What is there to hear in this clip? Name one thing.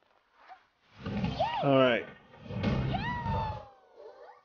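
Cartoonish cannons fire with deep, rumbling booms.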